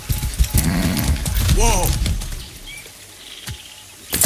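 Hooves clop on the ground as a horse walks.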